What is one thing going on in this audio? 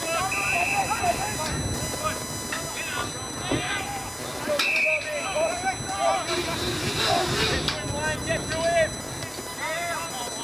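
Players shout and call to each other across an open field outdoors.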